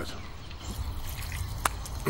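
Water splashes as it is poured out.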